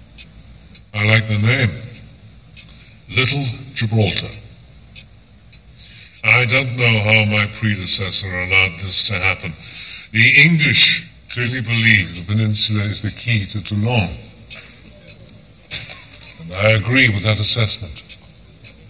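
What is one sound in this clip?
An elderly man speaks calmly and formally, heard through a loudspeaker.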